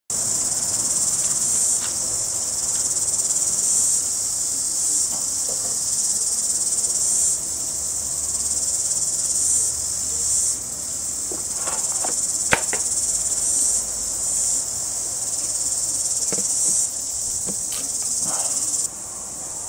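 A high-voltage insect zapper buzzes with a steady hiss.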